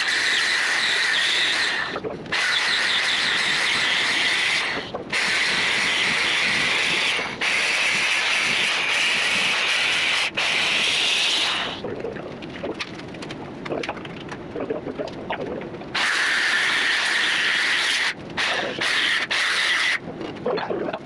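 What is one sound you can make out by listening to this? An angle grinder screeches loudly against metal in bursts.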